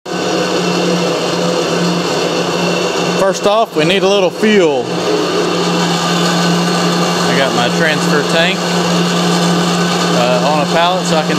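A fuel pump motor hums steadily.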